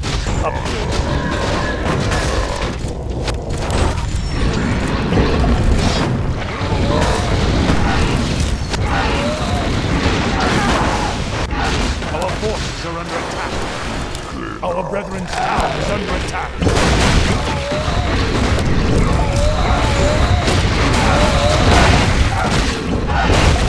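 Spells and weapons clash and zap in a game battle.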